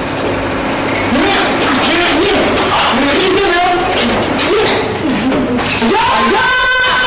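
A woman shouts with agitation.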